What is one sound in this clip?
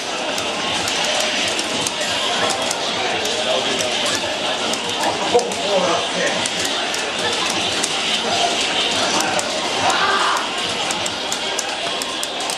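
Rapid fighting game hit effects crack and thud through a television speaker.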